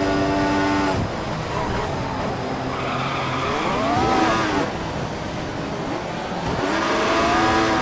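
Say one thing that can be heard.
A racing car engine drops in pitch as the car brakes hard and downshifts.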